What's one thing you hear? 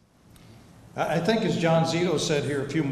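A middle-aged man speaks through a microphone.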